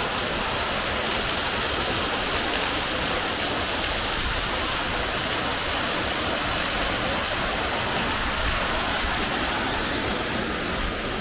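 A waterfall splashes and roars steadily close by.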